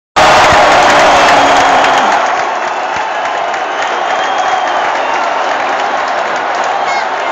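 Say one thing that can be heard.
A huge stadium crowd roars and chants loudly, echoing under the roof.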